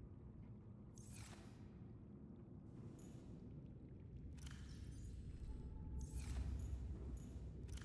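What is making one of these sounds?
A storage locker slides open with a short whoosh.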